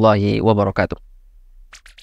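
A man chants in a deep, steady voice close to a microphone.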